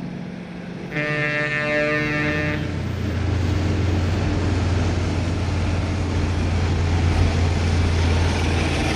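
A truck engine roars closer and grows louder.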